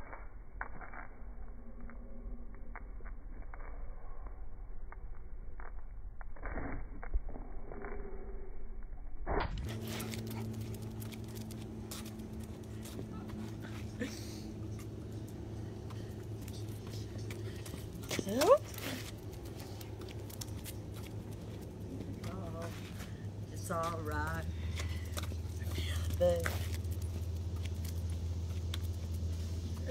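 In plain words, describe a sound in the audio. Footsteps tap on concrete.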